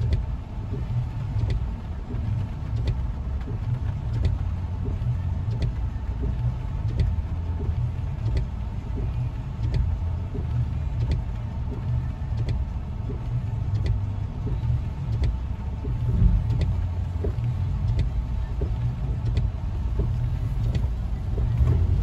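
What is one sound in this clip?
Windshield wipers thump back and forth at a steady pace.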